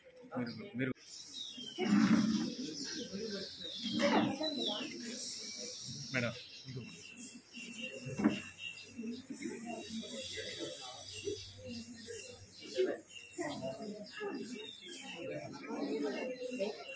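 A crowd of women and children chatter nearby.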